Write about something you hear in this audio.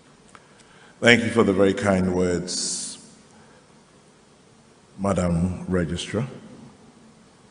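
A man speaks into a microphone over loudspeakers, calmly, with echo.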